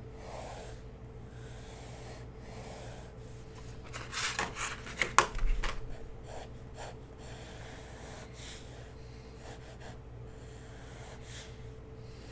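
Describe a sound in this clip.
A pencil scratches and scrapes across paper.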